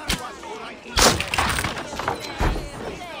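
A heavy wooden door bangs open.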